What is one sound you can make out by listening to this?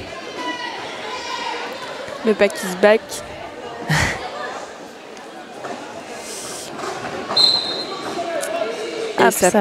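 A crowd of spectators chatters and shouts in the background.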